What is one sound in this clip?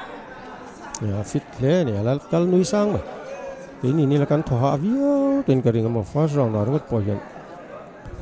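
A man in the crowd shouts loudly.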